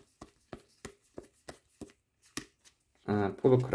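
Cards snap and flick as they are shuffled through by hand, one after another.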